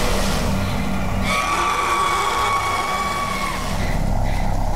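A creature lets out a sudden shriek close by.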